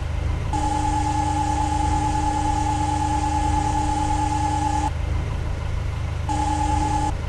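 A diesel loader engine rumbles steadily.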